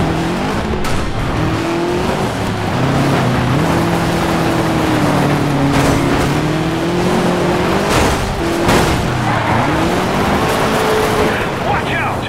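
A rally car engine roars and revs up and down through the gears.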